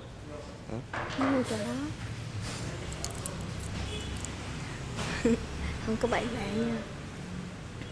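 A young woman speaks briefly and softly up close.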